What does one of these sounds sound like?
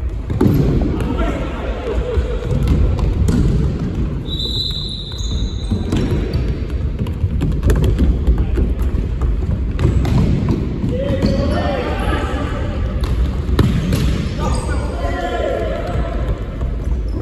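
Men call out to each other loudly across an echoing hall.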